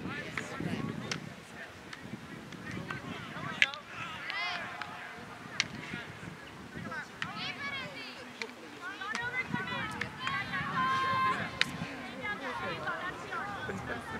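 Young women shout and call out excitedly across an open field.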